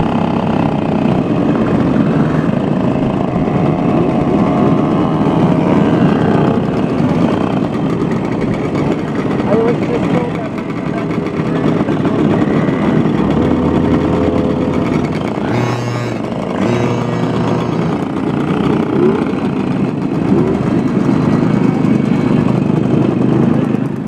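Many two-stroke mopeds idle and rev in a crowd outdoors.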